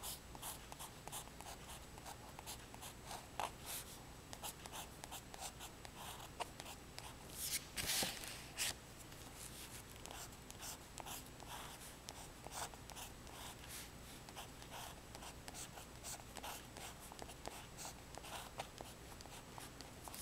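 A pen scratches and taps on paper in short strokes.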